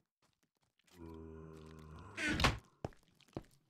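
A wooden chest creaks shut.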